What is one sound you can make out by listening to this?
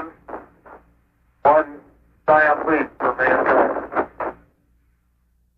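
A man speaks briefly over a crackly radio link.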